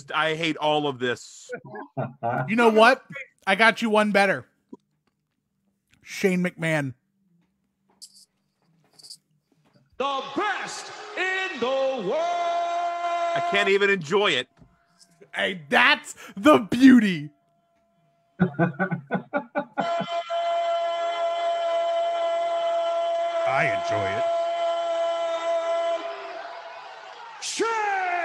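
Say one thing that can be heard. Men talk with animation over an online call.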